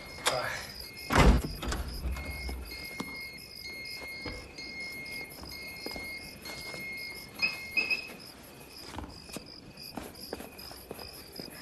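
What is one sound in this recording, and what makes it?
Footsteps shuffle on a hard floor.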